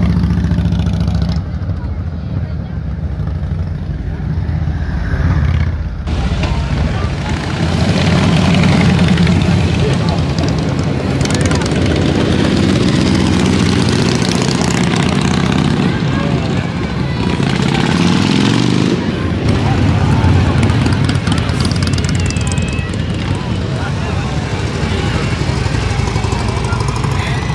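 Heavy motorcycle engines rumble and rev as they ride past one after another.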